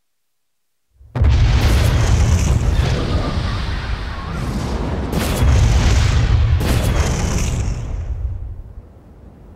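Loud explosions rumble and roar.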